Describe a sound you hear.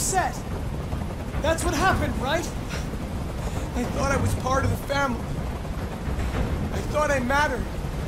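A man speaks tensely and threateningly, close by.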